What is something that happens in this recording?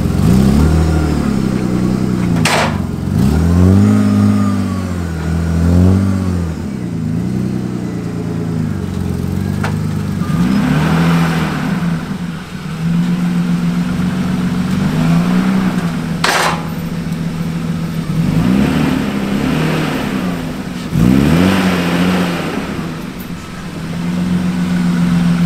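A car engine revs loudly and repeatedly, then drops back to a rough idle.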